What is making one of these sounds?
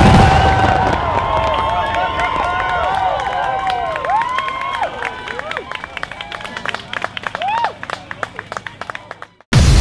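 Fireworks crackle and pop overhead, thinning out and fading.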